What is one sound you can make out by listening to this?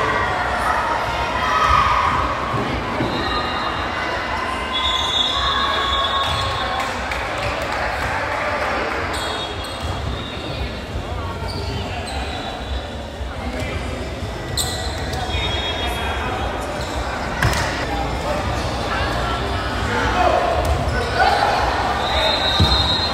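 People chatter and call out in a large echoing gym.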